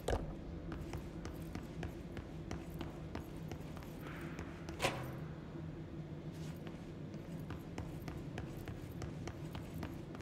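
Footsteps walk steadily across a hard floor, echoing slightly.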